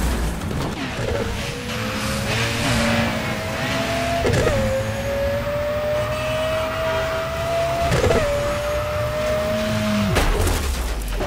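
A race car engine roars and climbs in pitch through several gear shifts.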